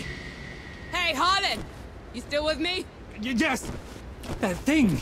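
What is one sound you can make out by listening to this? A young woman calls out urgently.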